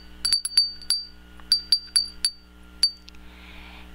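A glass wind chime tinkles with bright, ringing clinks.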